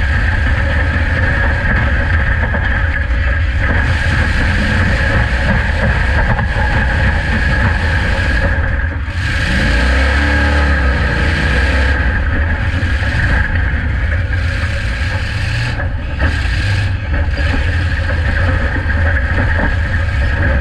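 A car engine roars loudly from inside the cab.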